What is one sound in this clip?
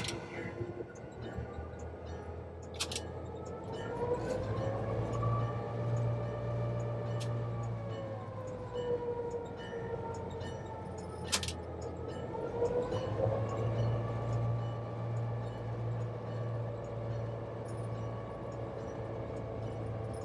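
A diesel locomotive engine rumbles and revs up and down.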